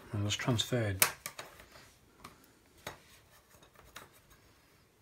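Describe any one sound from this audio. Thin wooden sticks tap and click together on a table.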